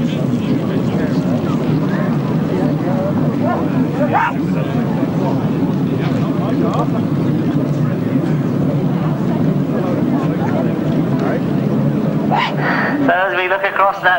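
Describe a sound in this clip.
Many motorcycle engines idle and rev loudly outdoors.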